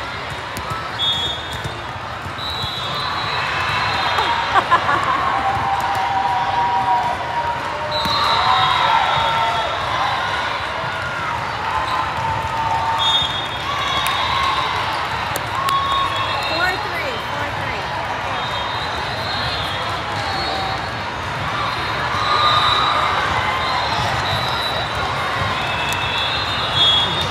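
Shoes squeak sharply on a wooden court.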